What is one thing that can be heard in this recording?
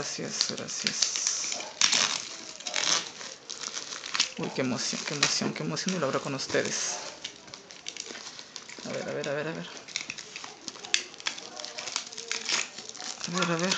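A utility knife slits through plastic wrap.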